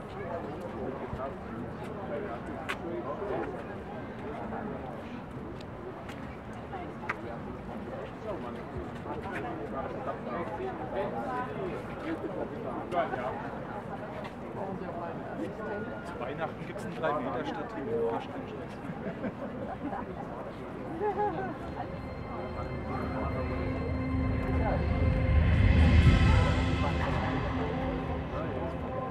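A crowd of adults murmurs and chatters outdoors.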